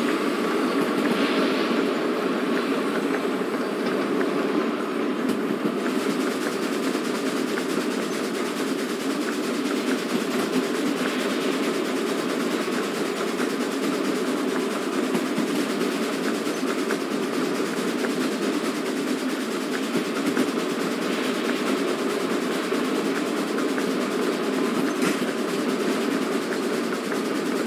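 Wheels clatter on the rails.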